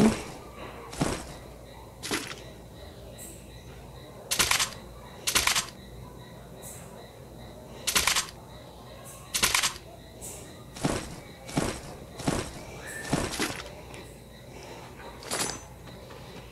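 Short game menu sounds click as items are picked up.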